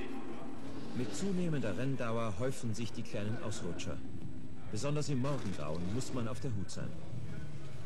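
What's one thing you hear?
A racing car engine roars past.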